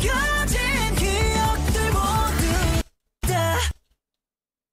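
A pop song with singing plays.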